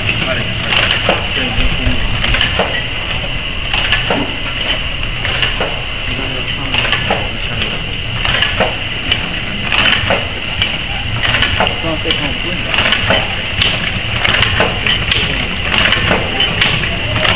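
A tea bag packing machine runs with a rhythmic mechanical clatter.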